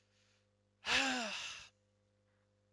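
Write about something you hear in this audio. A young woman lets out a short, falling cry close to a microphone.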